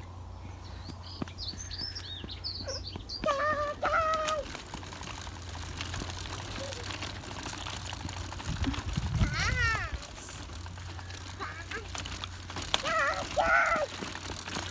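A little girl calls out in a high voice.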